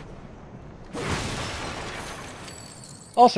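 A crate bursts apart with a loud crash.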